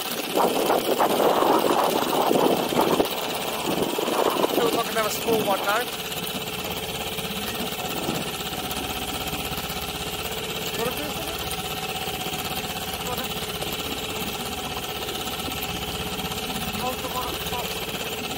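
An outboard motor hums steadily.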